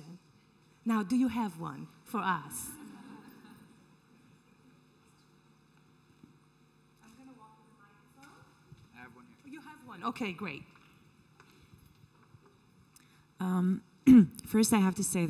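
A middle-aged woman speaks with animation into a microphone in a large echoing hall.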